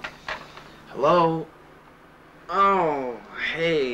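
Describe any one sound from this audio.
A young man speaks loudly into a telephone handset close by.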